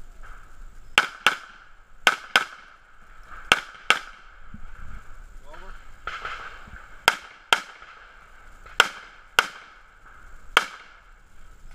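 A pistol fires shot after shot outdoors, each shot sharp and echoing.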